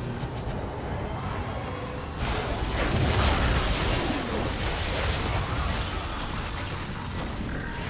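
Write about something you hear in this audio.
Fighting sound effects burst and boom in a video game.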